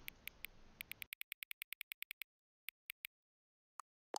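Short electronic ticks click rapidly, one after another.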